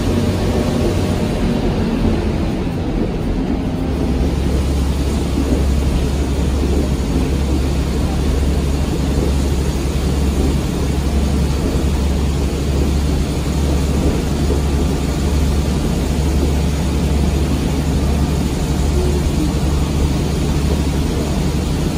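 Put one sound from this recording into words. A railcar engine drones steadily with a low rumble.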